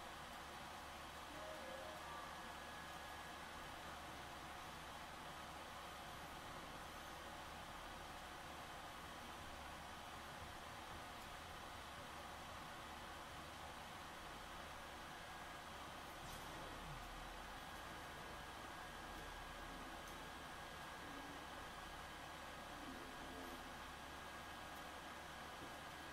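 Video game sounds play faintly from a television loudspeaker.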